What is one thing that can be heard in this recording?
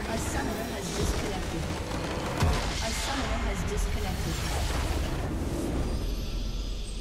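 A large magical blast crashes and rumbles.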